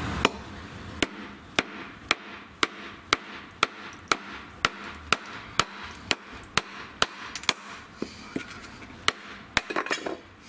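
A mallet knocks repeatedly on a knife driven into wood.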